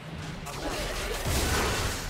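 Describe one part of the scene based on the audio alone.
A laser beam hums with a sharp zap.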